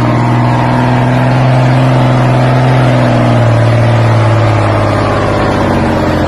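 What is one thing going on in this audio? A truck engine roars loudly as the truck labours through mud.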